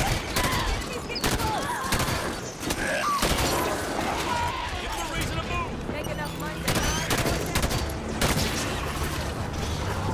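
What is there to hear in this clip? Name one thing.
Energy weapons zap and whine.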